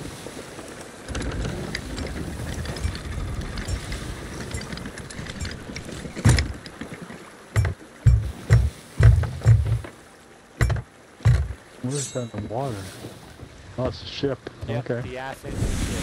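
Strong wind blows.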